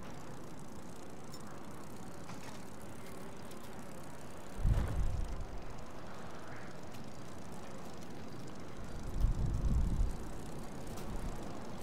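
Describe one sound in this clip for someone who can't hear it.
Bicycle tyres hum steadily on pavement.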